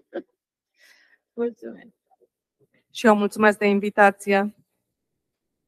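An elderly woman speaks briefly into a microphone, heard over an online call.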